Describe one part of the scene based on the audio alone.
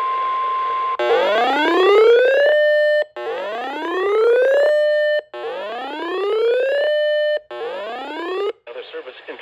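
A radio sounds rising wailing tones over and over.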